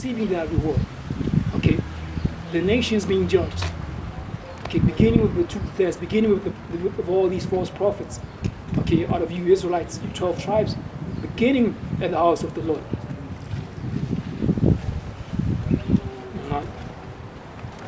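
A young man speaks close by, calmly.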